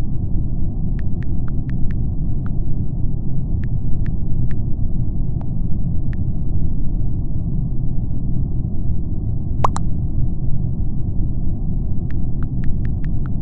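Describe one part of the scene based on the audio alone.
Phone keyboard taps click softly in quick bursts.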